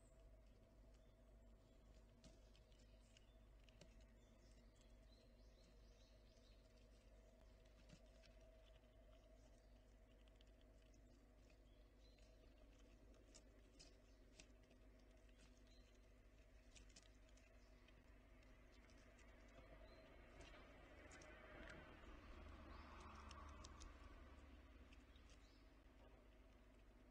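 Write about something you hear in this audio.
A squirrel nibbles and cracks seeds close by.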